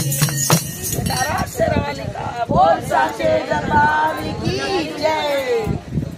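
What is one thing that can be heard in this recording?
A hand drum beats a rhythm close by.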